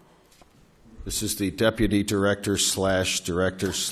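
A man speaks steadily through a microphone.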